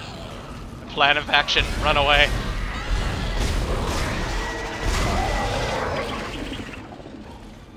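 A creature screeches and snarls.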